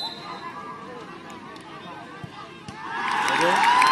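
A football thuds as a player kicks it.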